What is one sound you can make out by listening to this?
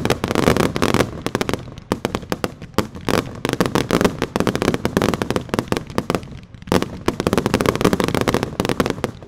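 Fireworks crackle and pop rapidly in bursts.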